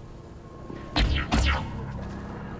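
A loud crackling energy blast bursts.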